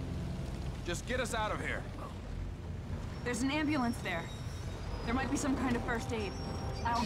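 A woman speaks urgently.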